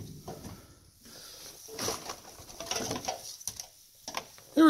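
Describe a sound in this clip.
Plastic-coated wires rustle and clatter as a hand sorts through them.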